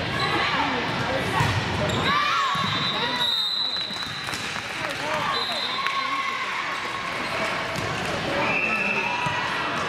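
Girls shout and call out to each other in a large echoing gym.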